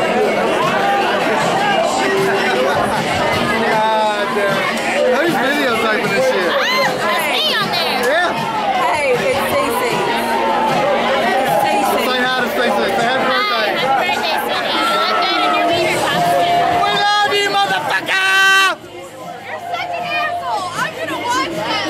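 A crowd chatters loudly all around.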